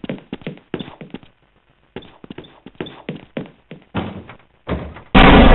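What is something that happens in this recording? Footsteps clatter quickly on a metal floor.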